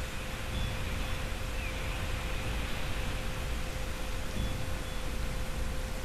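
Water rushes and splashes steadily down a waterfall.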